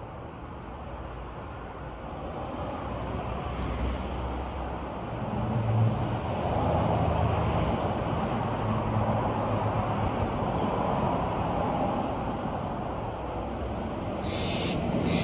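Wind rustles through leafy trees outdoors, swelling and easing.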